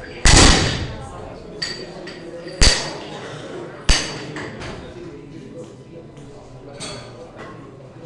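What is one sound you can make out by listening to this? Metal collars clink as they are locked onto a bar.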